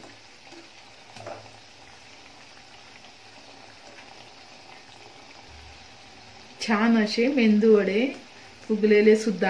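A metal fork scrapes and taps against a pan.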